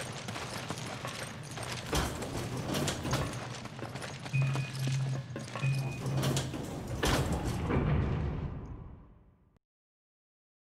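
A heavy metal gate rattles and clanks.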